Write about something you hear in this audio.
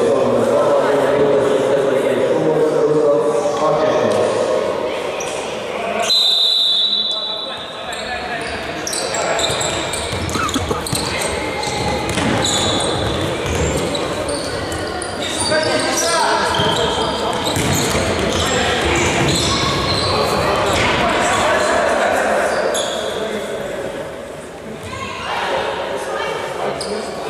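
Men shout and call out across a large echoing hall.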